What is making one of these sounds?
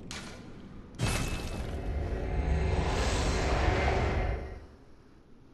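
A loud magical whoosh swells and then cuts off.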